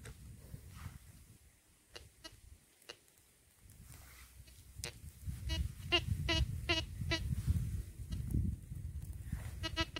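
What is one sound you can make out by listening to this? Hands scrape and dig into dry dirt.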